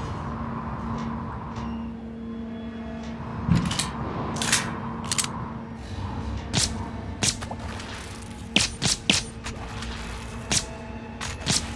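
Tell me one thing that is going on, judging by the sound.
A young man talks through a headset microphone.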